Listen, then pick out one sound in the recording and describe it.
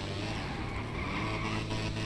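A motorcycle engine runs.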